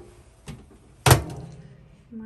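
A microwave door thumps shut.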